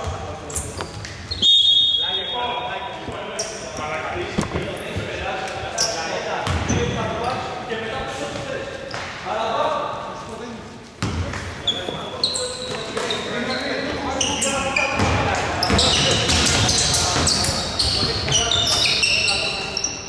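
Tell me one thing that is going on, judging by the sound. Young men shout and call to each other across the court.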